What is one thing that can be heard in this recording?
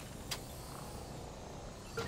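A small drone whirs as it hovers.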